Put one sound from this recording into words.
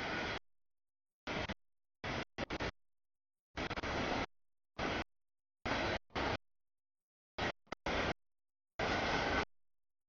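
A freight train rumbles and clatters past on the rails close by.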